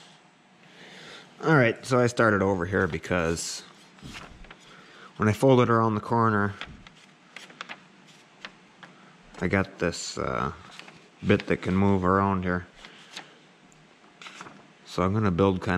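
A stiff plastic sheet crinkles and rustles as hands bend it.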